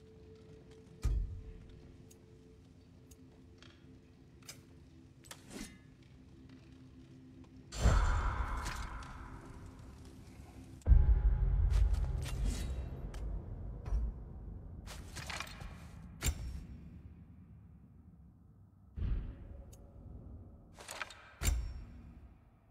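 Soft menu clicks and whooshes sound as options change.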